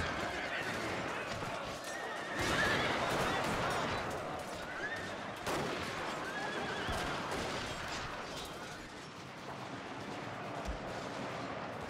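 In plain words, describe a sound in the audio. Muskets fire in scattered volleys.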